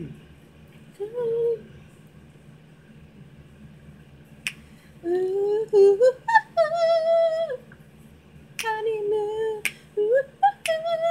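A young woman sings along excitedly close by.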